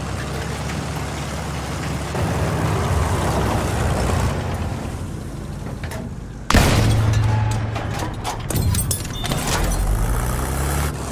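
An armoured vehicle's engine rumbles low and steadily.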